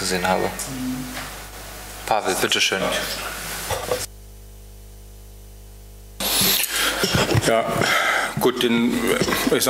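A man speaks calmly, heard through a microphone in a large room.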